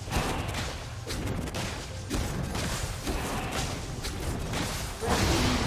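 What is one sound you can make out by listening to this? Spell effects crackle and whoosh in a fast game battle.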